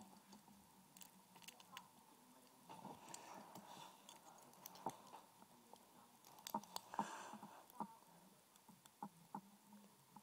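Small metal tools click and scrape against a small metal part close up.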